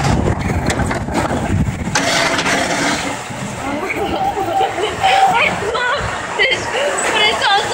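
A man laughs up close.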